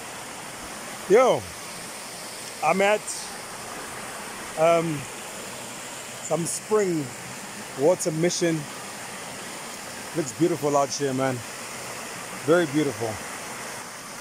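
A man speaks with animation, close to the microphone.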